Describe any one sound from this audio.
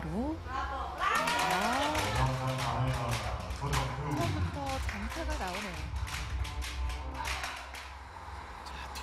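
People clap their hands in applause.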